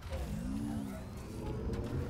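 Electric sparks crackle and fizz nearby.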